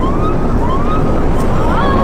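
A young woman screams.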